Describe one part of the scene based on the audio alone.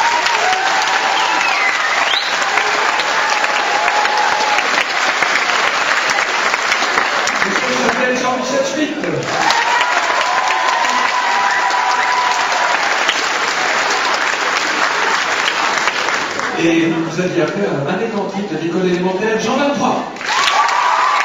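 A choir of young boys sings together in a large hall.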